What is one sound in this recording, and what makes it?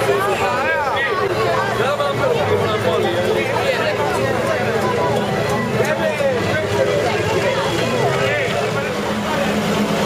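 Young men sing loudly together, close by.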